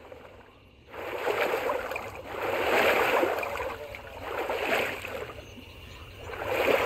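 Water splashes as someone wades.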